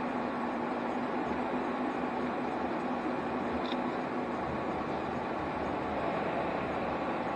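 Tyres roll on asphalt.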